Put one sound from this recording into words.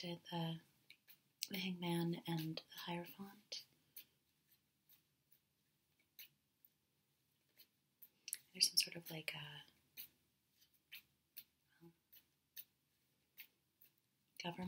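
Playing cards riffle and tap as they are shuffled by hand.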